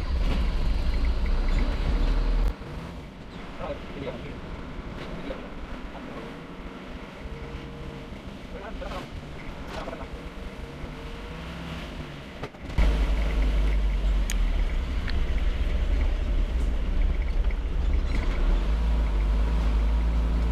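Wind rumbles and buffets loudly outdoors.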